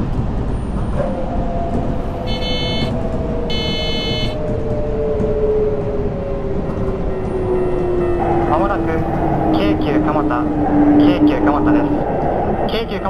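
An electric train motor whines, slowly falling in pitch.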